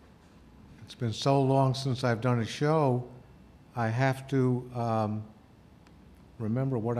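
An older man speaks calmly and close to a microphone, in short phrases with pauses.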